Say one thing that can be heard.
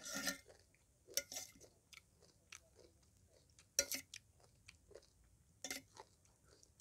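A metal spoon clinks against a plate.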